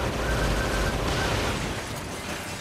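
An explosion bursts with a loud crackle.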